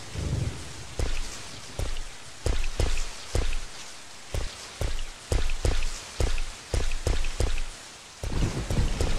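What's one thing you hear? Footsteps thud steadily on wooden boards.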